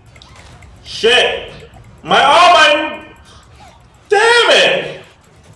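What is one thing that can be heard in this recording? A young man shouts excitedly into a microphone, close by.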